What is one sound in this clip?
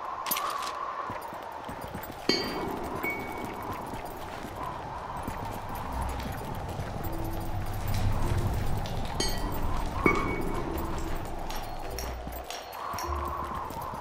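Quick light footsteps patter on hard ground.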